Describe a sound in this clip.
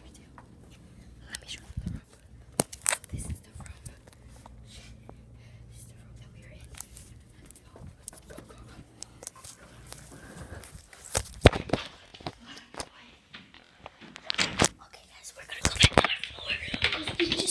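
Handling noise rubs and knocks close by.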